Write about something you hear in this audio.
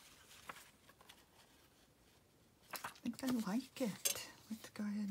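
Paper rustles and shuffles close by.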